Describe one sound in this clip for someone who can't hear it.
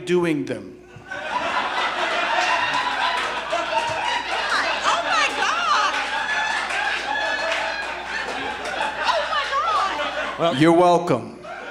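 An audience laughs and cheers.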